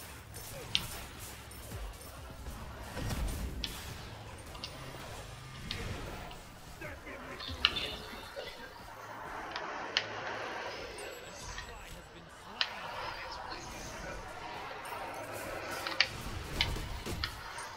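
Sharp game hit sounds click and zap now and then.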